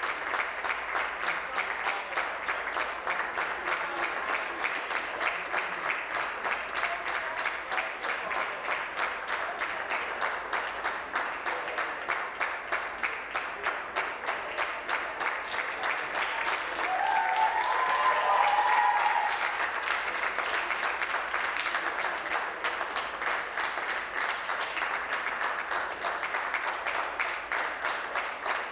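A crowd applauds steadily in a large hall.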